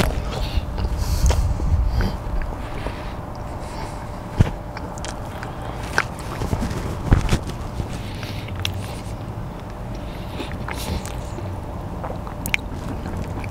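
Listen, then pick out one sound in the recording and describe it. A middle-aged man talks casually close by.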